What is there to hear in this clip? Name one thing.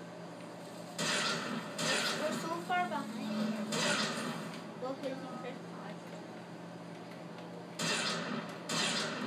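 Video game gunfire rattles from a television speaker.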